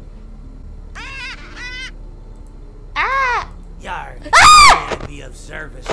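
A young woman exclaims in surprise close to a microphone.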